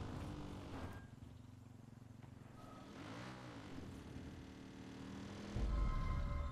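A quad bike engine hums steadily as it rolls along a gravel road.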